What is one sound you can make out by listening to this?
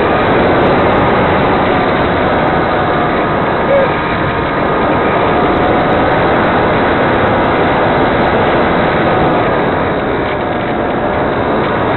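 Wind roars steadily past a small aircraft in flight.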